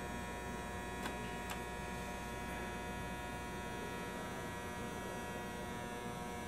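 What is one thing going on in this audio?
A benchtop test chamber hums with a steady electrical whine.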